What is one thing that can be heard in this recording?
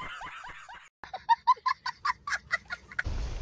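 A young child laughs in bursts.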